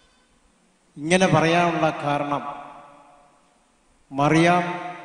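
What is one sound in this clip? An elderly man speaks slowly and solemnly into a microphone, in a room with some echo.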